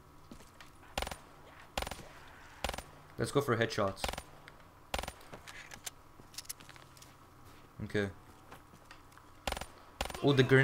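Gunshots fire one at a time.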